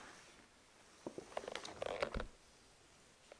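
Small metal and glass vessels clink softly.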